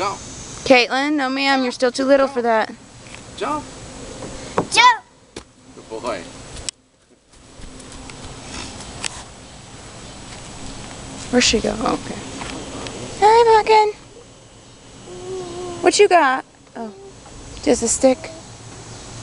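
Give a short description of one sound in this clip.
A young child chatters and shouts excitedly nearby.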